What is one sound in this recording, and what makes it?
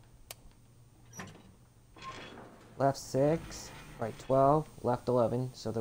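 A heavy metal safe door swings open.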